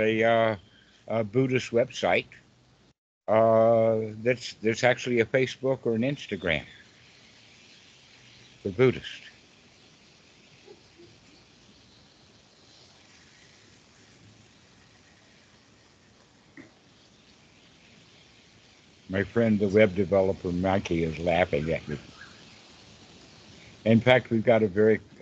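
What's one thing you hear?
An elderly man talks with animation over an online call.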